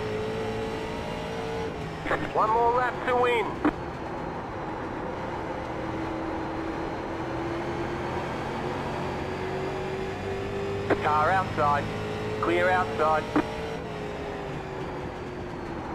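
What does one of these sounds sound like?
A race car engine drones steadily, its pitch sinking and rising slowly.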